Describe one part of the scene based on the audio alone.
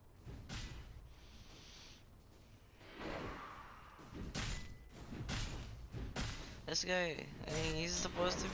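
Weapons clash and spells burst in a fast, noisy fight.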